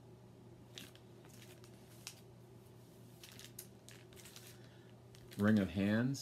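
A record sleeve rustles as a man handles it.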